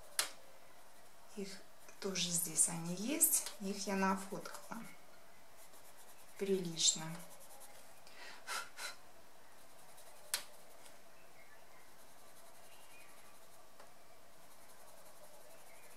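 A colored pencil scratches softly on paper.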